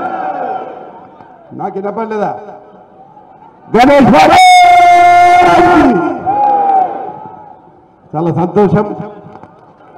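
A man shouts a speech forcefully through a loudspeaker microphone outdoors, with echo.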